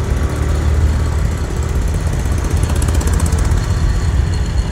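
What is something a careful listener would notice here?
A truck rumbles by close on one side.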